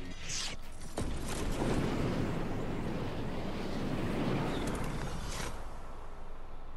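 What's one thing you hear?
Wind rushes loudly past a falling figure.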